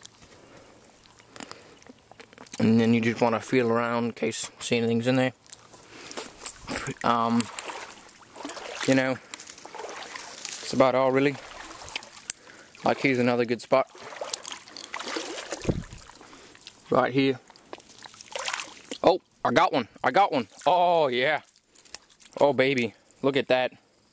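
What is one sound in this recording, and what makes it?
Water splashes softly as a hand dips into a shallow pool.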